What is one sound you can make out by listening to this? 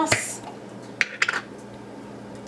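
A glass jar clicks and knocks in a hand.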